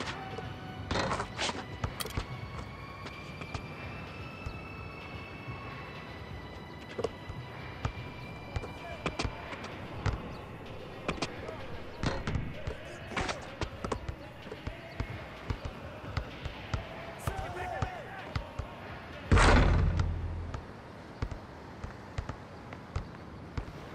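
A basketball bounces repeatedly on an outdoor court.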